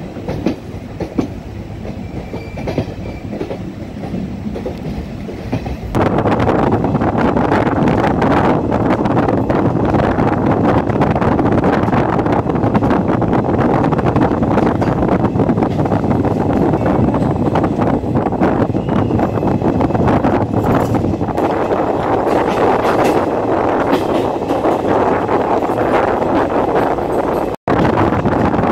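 A passenger train rumbles along the track, heard from inside the coach.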